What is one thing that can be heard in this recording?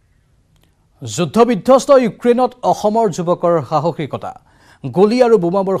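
A man speaks clearly and steadily into a microphone.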